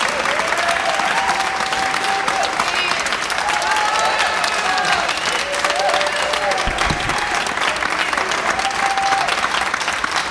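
A crowd cheers and calls out with enthusiasm.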